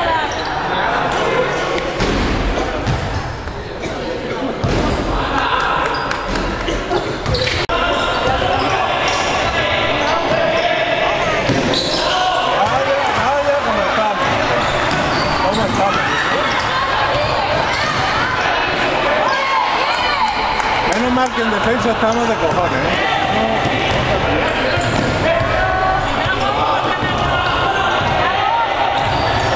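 A crowd of spectators talks and shouts in a large echoing hall.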